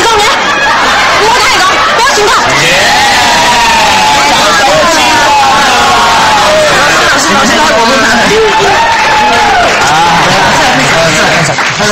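Several young people chatter and exclaim excitedly at once.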